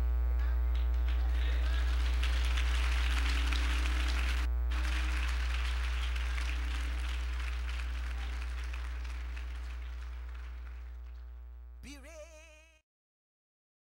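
An elderly woman speaks with feeling into a microphone over a loudspeaker in an echoing hall.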